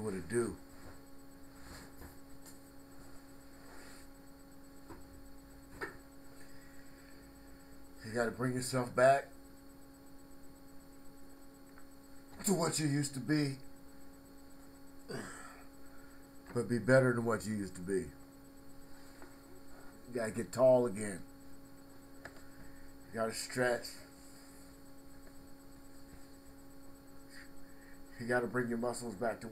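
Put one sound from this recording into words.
A middle-aged man speaks close to a webcam microphone in short emphatic bursts with long pauses.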